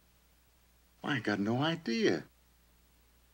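A man speaks excitedly nearby.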